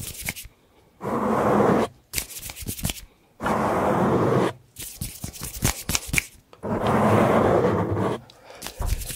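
A man whispers very close to a microphone.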